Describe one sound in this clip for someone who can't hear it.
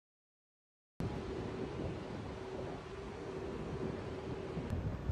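City traffic hums faintly in the distance.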